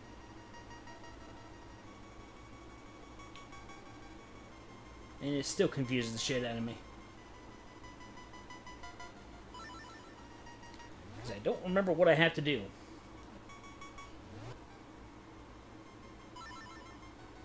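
Soft electronic game music plays with beeping tones.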